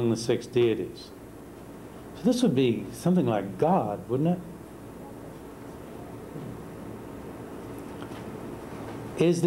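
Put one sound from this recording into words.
A middle-aged man speaks calmly in short bursts.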